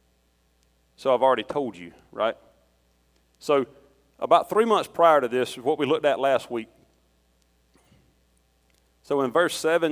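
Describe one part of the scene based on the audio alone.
A middle-aged man speaks calmly through a microphone in an echoing hall, with pauses.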